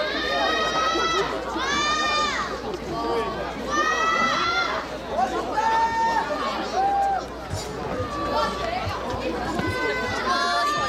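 Young women speak with animation through a microphone over loudspeakers, outdoors.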